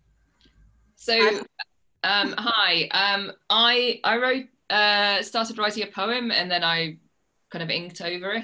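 A younger woman speaks with animation over an online call.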